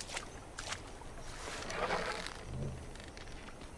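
A bowstring creaks as a bow is drawn back.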